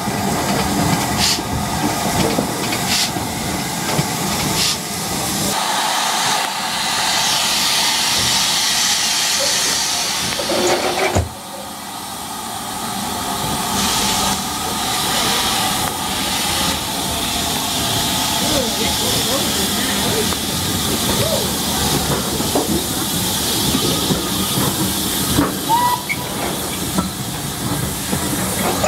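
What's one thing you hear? A steam train rumbles and clatters along the tracks.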